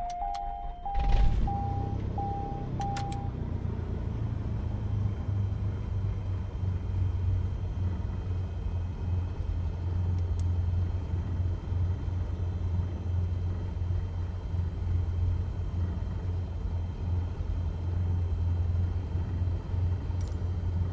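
A small aircraft engine drones steadily at a low pitch.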